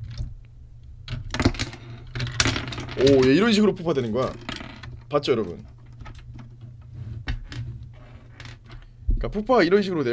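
Plastic toy bricks click and clatter as they are handled.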